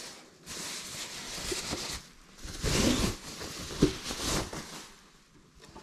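Plastic wrapping rustles and crinkles as it is pulled off.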